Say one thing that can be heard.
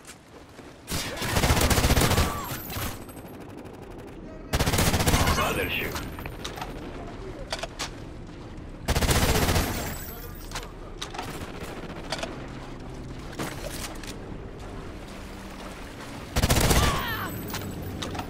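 Automatic gunfire rattles in short, loud bursts.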